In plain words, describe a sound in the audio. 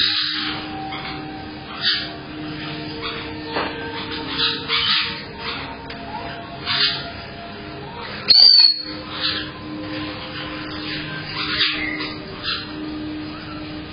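Small parrots chirp and squawk in short bursts close by.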